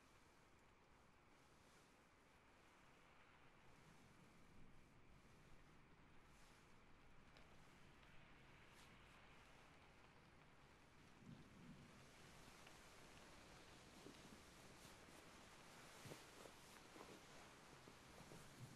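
Soft fabric brushes and rustles right up close to a microphone.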